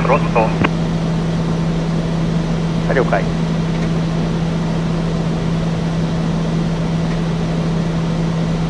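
A propeller aircraft engine drones steadily from inside the cabin.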